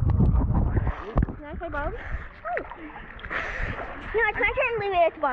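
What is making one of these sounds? Water splashes and laps close by at the surface.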